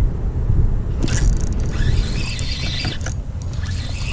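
A fishing reel whirs as its handle is cranked.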